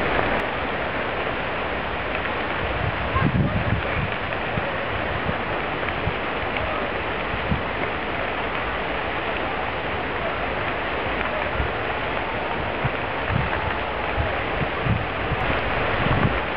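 A wildfire roars and crackles through brush.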